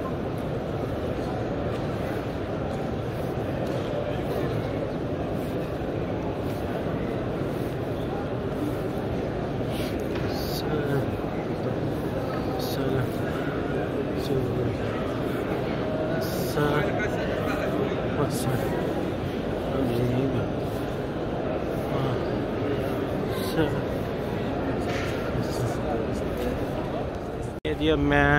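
A crowd murmurs and chatters softly in a large echoing hall.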